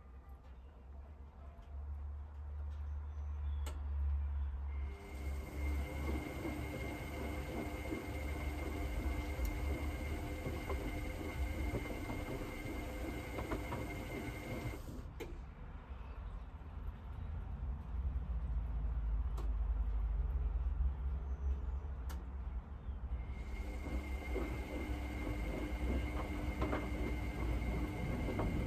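A washing machine drum turns with a low steady rumble.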